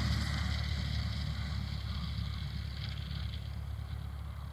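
A small propeller plane's engine drones in the distance and fades away.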